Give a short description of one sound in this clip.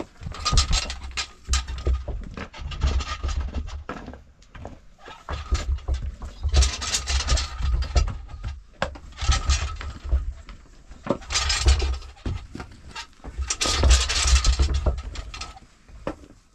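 A heavy stone roller rumbles as it is pulled across the earth floor.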